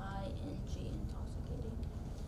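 A young girl speaks briefly into a microphone.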